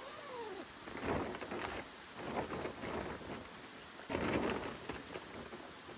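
A plastic tarp rustles and crinkles as it is handled.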